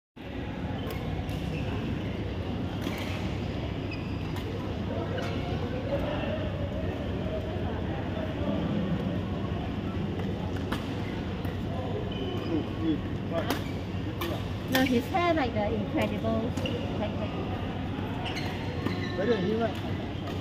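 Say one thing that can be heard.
Badminton rackets strike a shuttlecock with sharp pops in an echoing hall.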